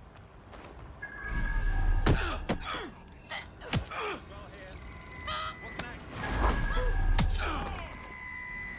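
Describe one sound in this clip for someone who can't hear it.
Heavy blows and thuds land in a scuffle.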